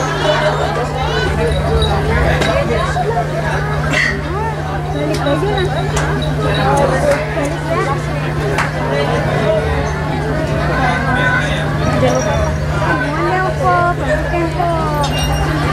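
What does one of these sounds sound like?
A crowd of men talk and call out all around, close by.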